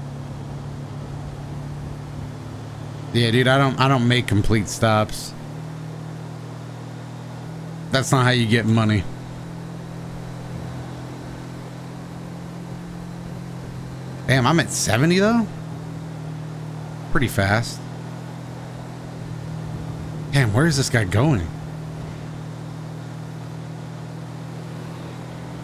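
A van engine hums steadily as it drives along a road.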